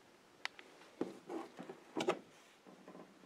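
A plastic cover rattles and clicks as a hand handles it.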